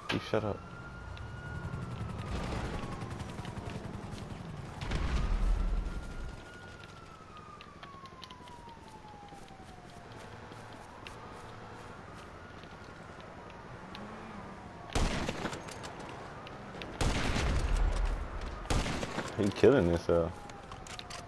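A rifle fires loud shots that echo.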